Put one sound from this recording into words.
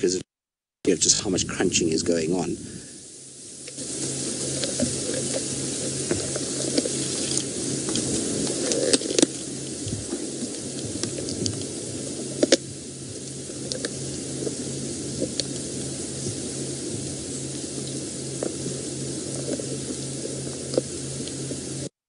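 An animal rustles and crunches through dry grass close by.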